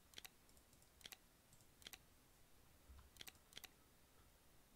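Menu buttons click sharply, one after another.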